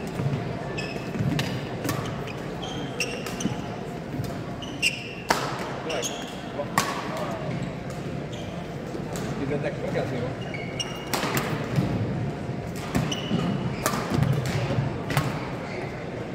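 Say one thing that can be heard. Shoes squeak sharply on a sports floor.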